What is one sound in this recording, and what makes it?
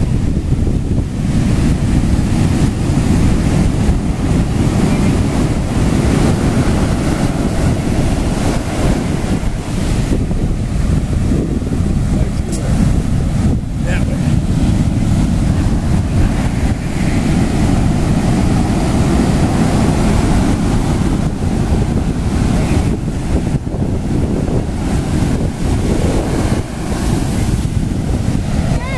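Foamy surf rushes and hisses over sand.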